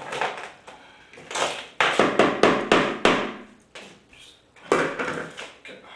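A bowl clatters onto a plate on a table.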